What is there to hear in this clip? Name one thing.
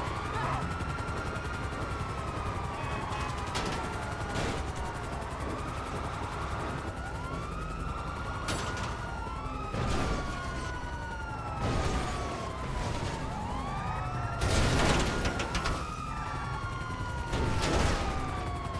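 A heavy tank engine rumbles steadily as it drives.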